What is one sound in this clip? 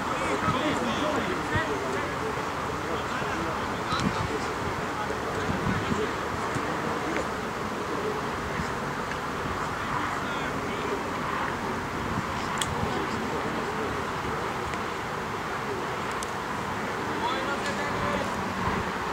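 Players shout to each other across an open field outdoors.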